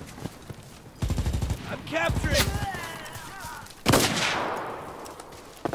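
Loud explosions boom nearby and rumble away.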